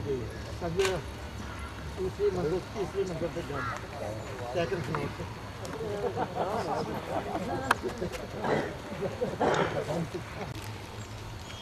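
Men and women talk casually nearby outdoors.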